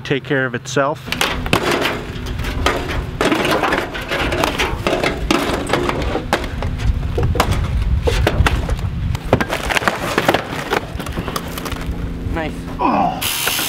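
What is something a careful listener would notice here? Sheet metal and wooden debris clatter and bang as it is tossed onto a pile.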